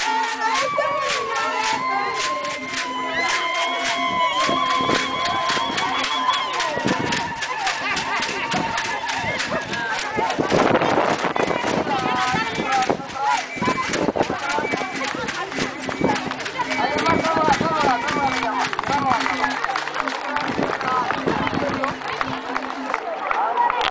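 A group of women sing together loudly outdoors.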